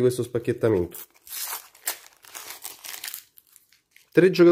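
A plastic sticker packet crinkles and tears open.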